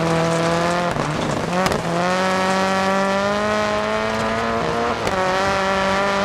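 A rally car's exhaust pops and crackles.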